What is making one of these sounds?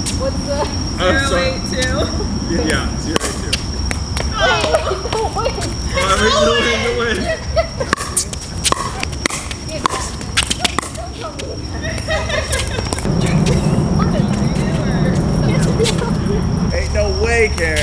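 Young women talk and laugh close by, outdoors.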